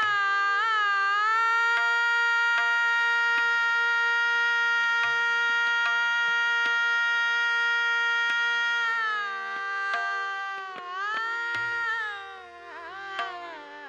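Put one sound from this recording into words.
A woman sings a long, held melody into a microphone, her voice gliding and bending near the end.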